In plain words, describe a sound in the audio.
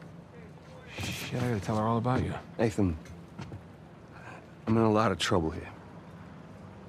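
An older man speaks in a low, calm voice.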